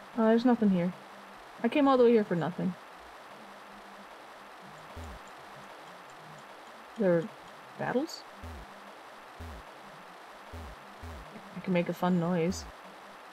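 A young woman speaks with animation into a microphone, in short bursts.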